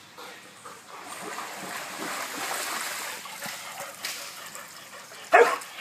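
A dog splashes while wading through shallow water.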